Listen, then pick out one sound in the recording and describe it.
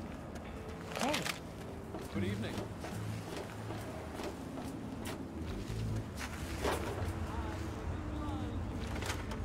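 Footsteps crunch and clank on a metal walkway.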